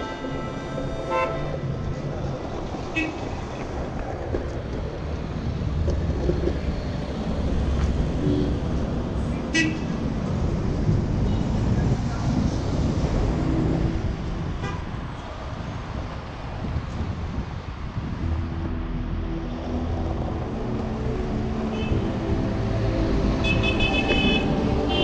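Skateboard wheels roll and rumble over asphalt.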